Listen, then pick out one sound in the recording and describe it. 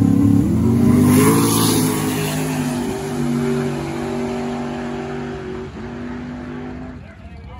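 A race car's engine roars as the car drives past.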